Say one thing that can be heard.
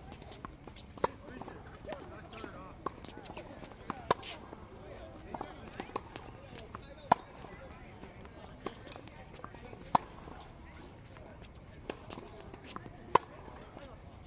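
Tennis balls are hit with sharp pops, back and forth.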